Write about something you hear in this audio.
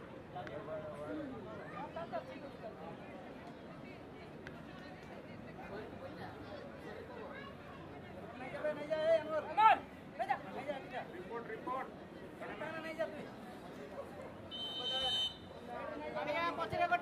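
A crowd of young men chatters and shouts outdoors.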